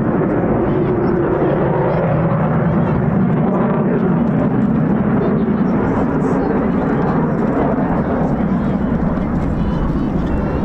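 Jet engines roar loudly overhead with a deep, steady rumble.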